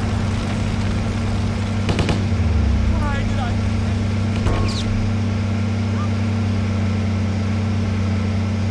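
A jeep engine rumbles steadily as the jeep drives.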